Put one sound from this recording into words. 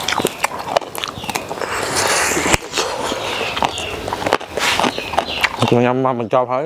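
A man bites and crunches loudly into crisp fruit close to a microphone.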